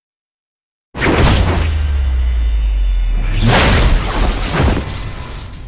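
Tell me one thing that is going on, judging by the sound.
A loud energy blast roars and crackles.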